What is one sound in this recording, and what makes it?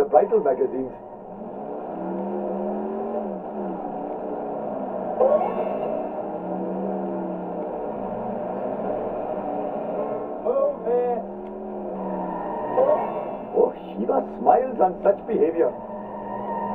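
A car engine hums steadily, rising and falling in pitch as the car speeds along.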